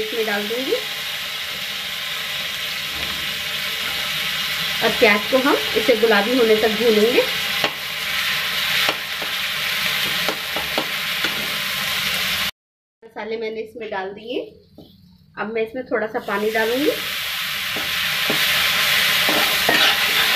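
Onions sizzle steadily in hot oil.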